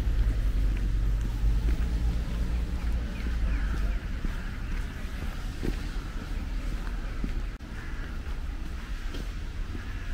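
City traffic hums steadily in the distance.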